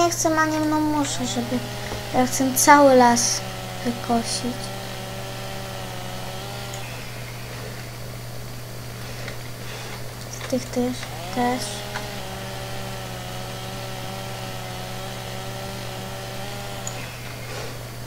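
A chainsaw engine revs up and drones at a steady high pitch.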